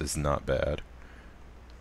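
A man speaks briefly into a close microphone.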